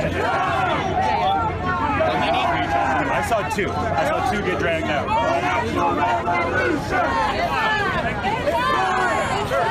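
A crowd of men and women shout over one another, close by, outdoors.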